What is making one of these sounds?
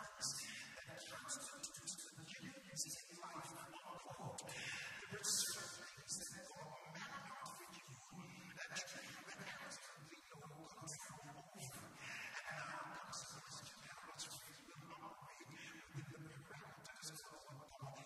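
A middle-aged man preaches with animation through a microphone and hall loudspeakers.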